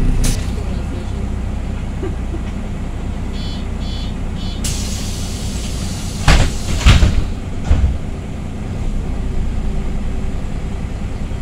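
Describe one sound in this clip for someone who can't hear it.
A bus engine rumbles steadily as the bus drives along.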